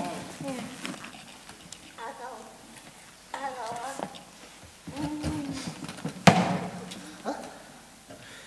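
A metal chair scrapes and clanks on a wooden floor.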